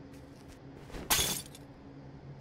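A glass cabinet door rattles open.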